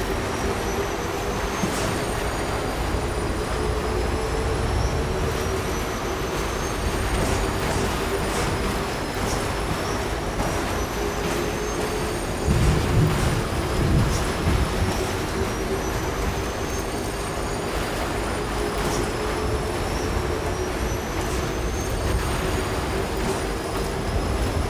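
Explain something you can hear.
A motorbike engine hums steadily as it rides over snow.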